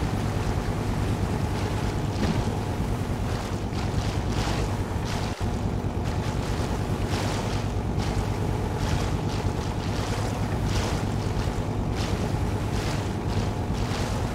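A boat motor hums steadily.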